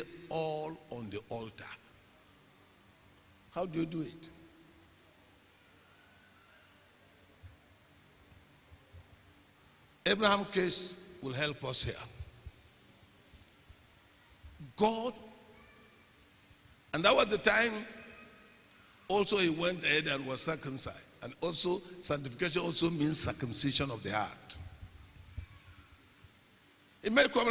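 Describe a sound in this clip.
A man preaches with animation through a microphone, pausing often, in a large echoing space.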